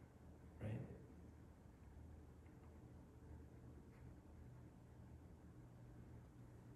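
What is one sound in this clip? A man speaks calmly and slowly into a microphone.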